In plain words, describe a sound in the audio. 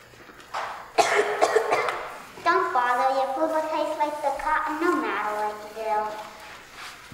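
A young girl speaks clearly, her voice carrying in the room.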